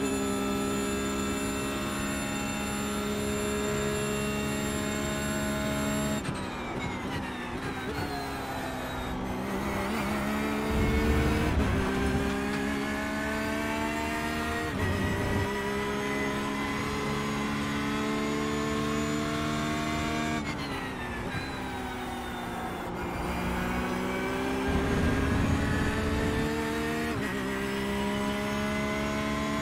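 A race car engine roars at high revs, dropping in pitch on braking and rising again as it shifts through the gears.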